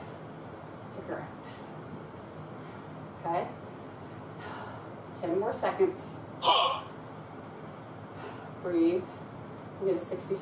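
A woman speaks to the listener in short calm phrases, close by.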